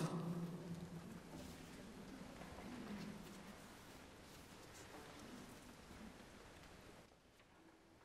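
A large choir sings a sustained chord that fades away, echoing in a large reverberant hall.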